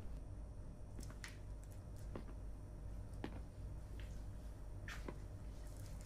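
Footsteps tap on a hard floor in a quiet room.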